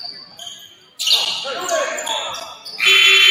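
Spectators cheer and clap.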